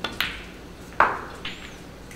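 A snooker ball knocks against another ball.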